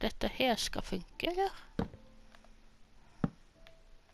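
A wooden chest is set down with a dull thud.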